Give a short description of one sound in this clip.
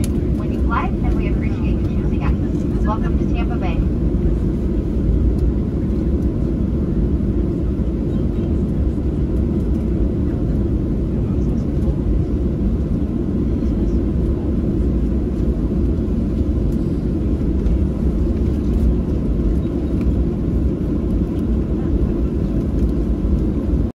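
A jet plane's engines roar steadily from inside the cabin.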